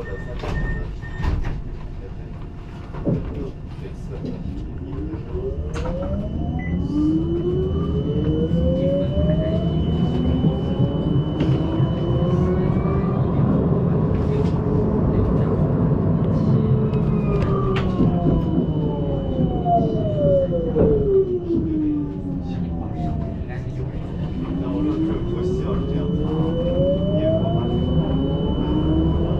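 Tram wheels rumble steadily on the rails.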